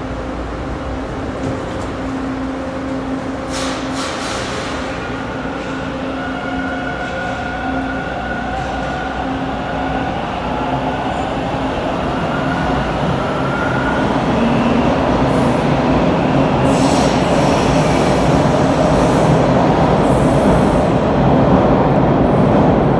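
A subway train rumbles loudly past in an echoing underground station.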